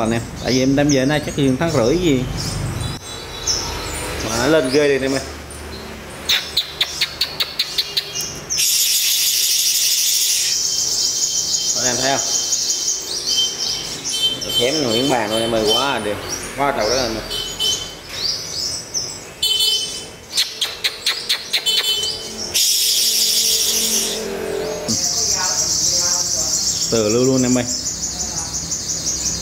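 Small birds chirp and trill in rapid bursts.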